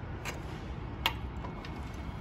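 A metal ladle clinks against a copper pot.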